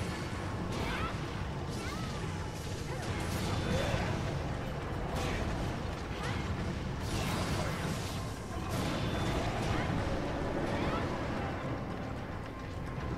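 Heavy blade strikes clang against a huge beast's scales.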